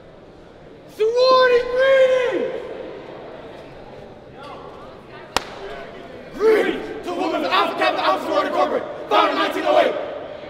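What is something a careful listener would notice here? Young men shout loudly in a large echoing hall.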